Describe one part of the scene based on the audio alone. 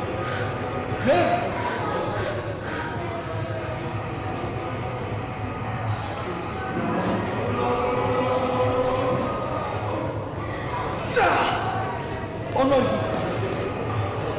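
Men shout encouragement loudly during a heavy squat.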